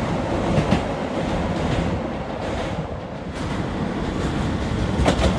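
A train rumbles along the tracks as it pulls into the station.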